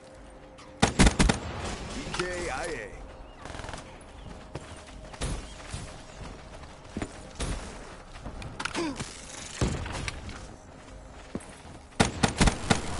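Gunshots fire in short rapid bursts.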